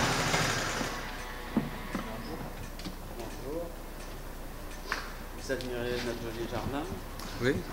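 Two men talk casually nearby outdoors.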